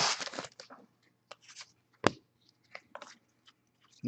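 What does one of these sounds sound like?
Trading cards flick and tap against each other in the hands.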